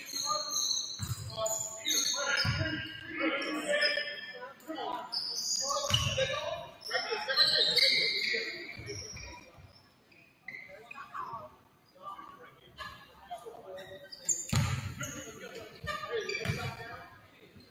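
A basketball thumps on the hardwood floor.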